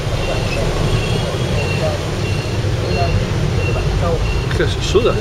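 Motorbikes and cars hum past in busy street traffic.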